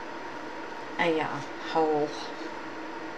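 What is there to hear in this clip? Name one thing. A woman speaks a few words briefly, close by.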